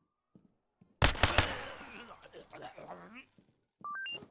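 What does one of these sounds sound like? A rifle fires a quick burst of loud shots that echo in a room.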